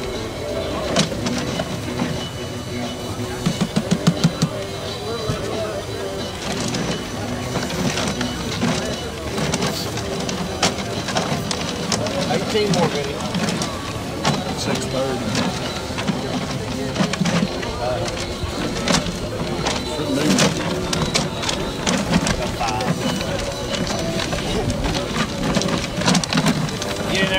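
Paper tickets tumble and rustle inside a spinning plastic drum.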